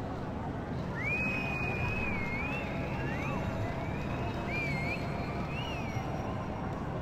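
A game character lets out a high, warbling musical call that slides up and down.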